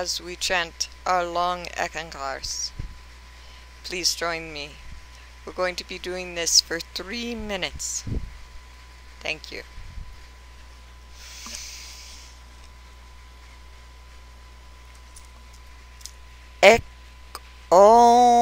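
A middle-aged woman speaks calmly and slowly close to a microphone.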